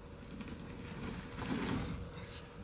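A plastic tank scrapes and bumps as workers guide it.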